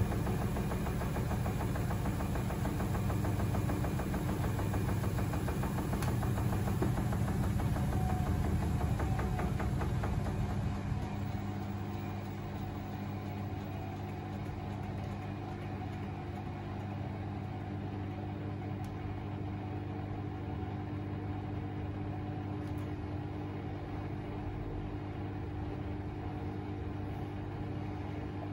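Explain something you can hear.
A washing machine drum turns with a steady low hum.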